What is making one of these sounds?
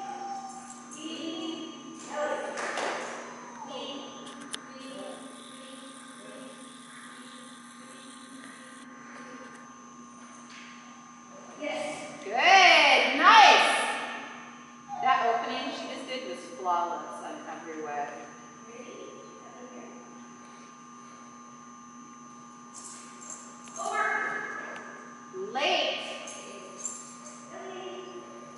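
A woman calls out to a dog from across a large echoing hall.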